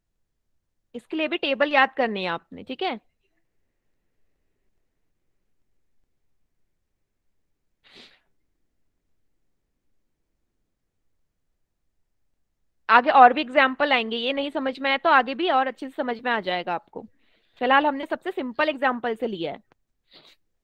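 A young woman speaks calmly through a headset microphone, heard as over an online call.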